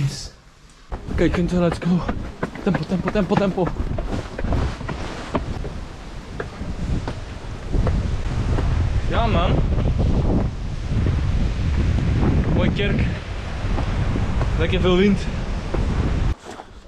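A young man talks breathlessly close to a microphone.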